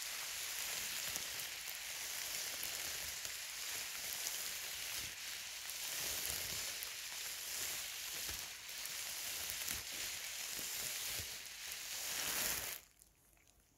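A plastic bag crinkles and rustles loudly close by.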